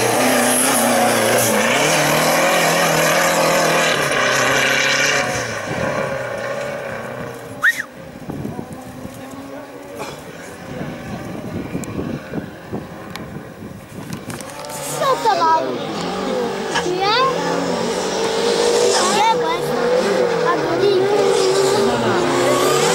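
A rally car engine revs hard and roars past close by.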